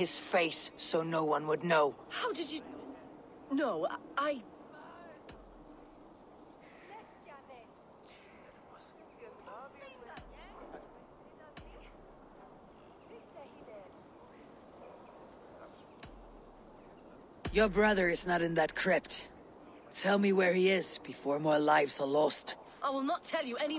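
A woman speaks calmly and firmly, close by.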